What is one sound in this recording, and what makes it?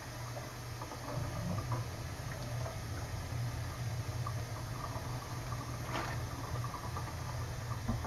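Water splashes as dishes are rinsed.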